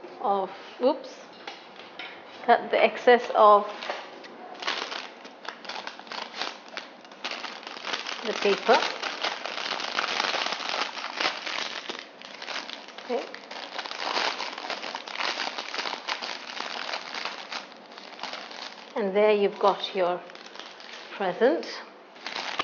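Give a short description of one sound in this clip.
A woman speaks calmly and clearly, close to a microphone.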